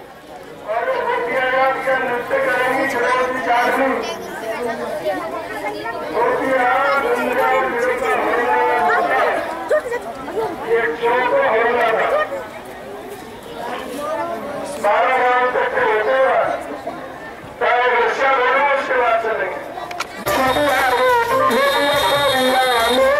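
A crowd of girls and women sings together in loud bursts with short pauses.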